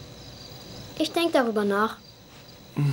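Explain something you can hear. A boy speaks calmly and close by.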